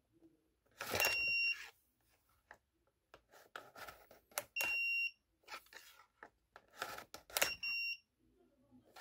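A card reader gives short, high beeps.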